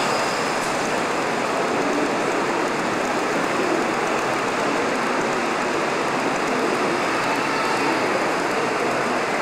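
A model train rumbles steadily along its tracks.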